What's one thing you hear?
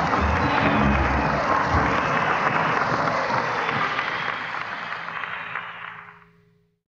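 A rock band plays loudly with drums and electric guitar, then fades out.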